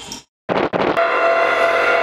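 Electric guitars play loudly.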